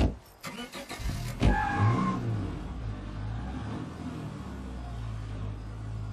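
A car engine starts and runs, revving as the car drives off.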